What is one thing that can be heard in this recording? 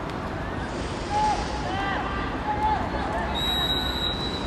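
Young men shout to each other across an open field, far off.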